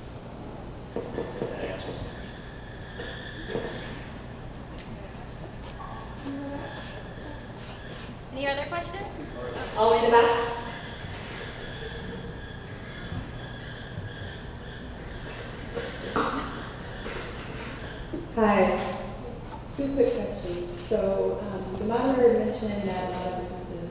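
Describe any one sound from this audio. A man speaks into a headset microphone in a large room.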